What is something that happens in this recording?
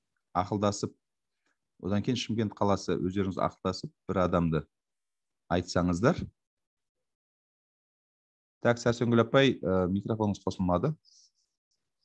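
A man speaks calmly through an online call, in short phrases with pauses.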